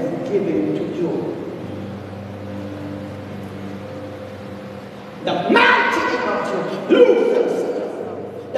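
A man prays aloud close by with feeling.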